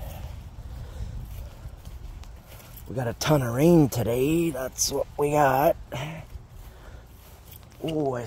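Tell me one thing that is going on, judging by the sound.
Footsteps swish through short grass.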